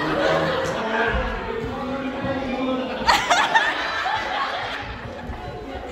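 A man laughs loudly close by.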